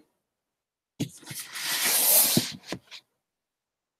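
Fabric rustles and brushes loudly against the microphone.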